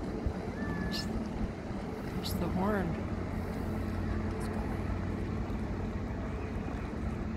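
Wind blows across the water.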